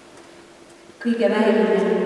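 An older woman begins speaking into a microphone in a large echoing hall.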